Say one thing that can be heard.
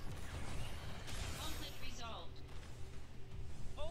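A magical blast bursts and fades.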